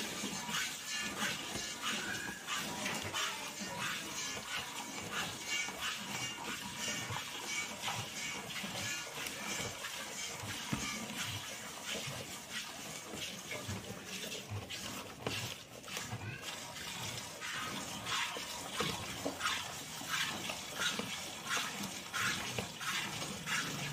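Milk squirts in quick, rhythmic spurts into a metal pail.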